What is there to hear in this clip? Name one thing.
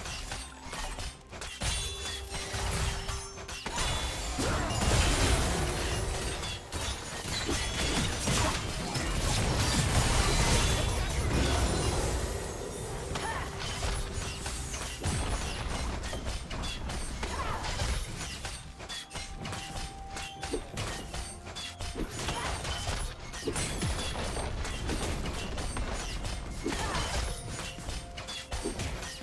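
Video game spells crackle and boom in a hectic battle.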